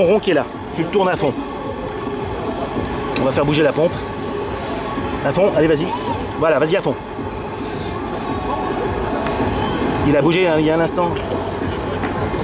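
A small steam engine runs with a steady hiss and a soft mechanical clatter.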